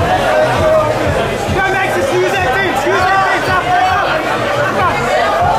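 A crowd of men and women shouts and cheers loudly close by.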